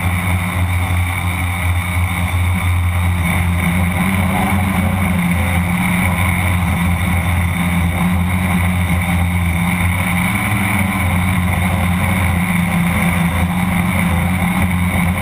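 A small drone's motors whir steadily up close.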